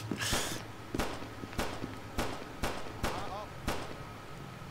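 Gunshots crack several times in quick succession.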